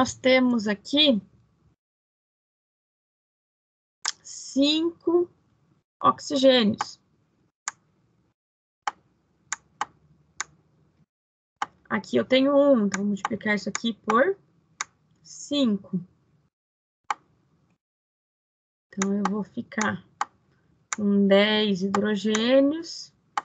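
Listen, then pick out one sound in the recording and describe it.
A woman explains calmly over an online call, with pauses.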